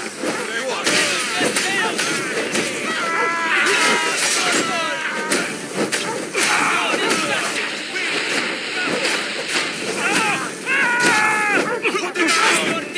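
Swords clash and strike in a fierce fight.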